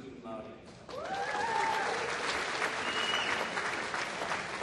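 A woman in the crowd cheers and whoops loudly.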